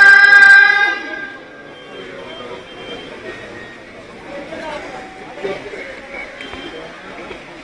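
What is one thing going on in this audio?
A large crowd murmurs softly.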